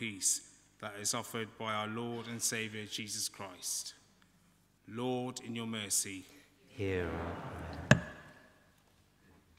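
A man reads aloud through a microphone in a large echoing hall.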